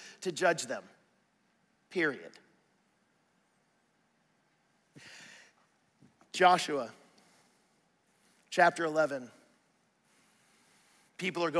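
A man speaks in short bursts through a microphone, with pauses.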